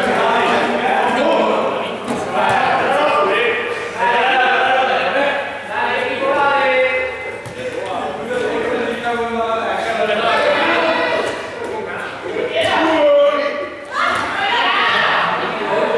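Many children shout and chatter in a large echoing hall.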